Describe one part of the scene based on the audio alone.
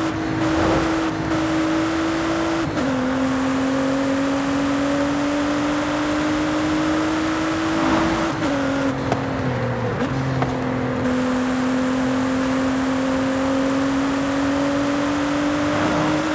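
A racing car engine roars at high speed, its pitch dropping briefly at each gear shift.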